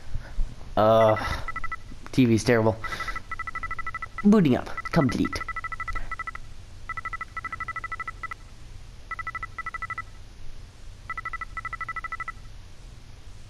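Rapid electronic beeps chirp in short bursts as text types out.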